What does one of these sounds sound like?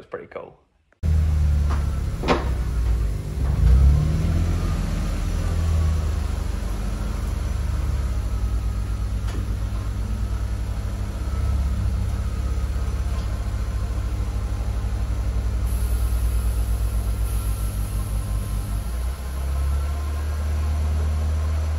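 A car engine idles with a steady low rumble.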